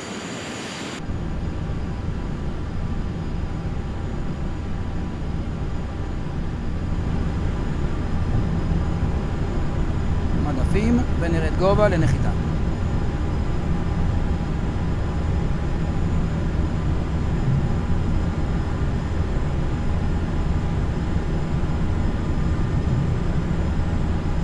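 Jet engines rumble low and steady, heard from inside the plane.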